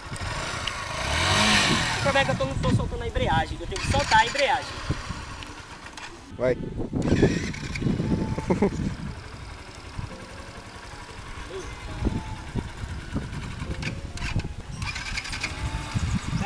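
A motorcycle engine runs and revs close by.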